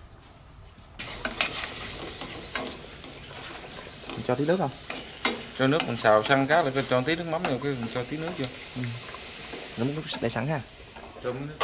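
Food sizzles and hisses in a hot pot.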